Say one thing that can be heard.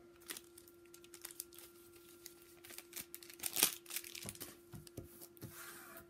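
Foil wrappers crinkle and rustle.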